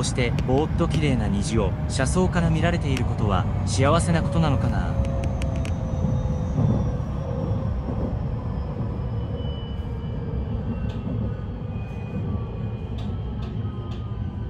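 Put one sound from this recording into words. A train rumbles low and steady along the tracks.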